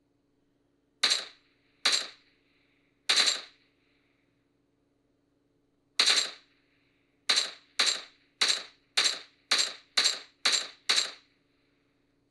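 Gunshots from a mobile game fire in short bursts through a small phone speaker.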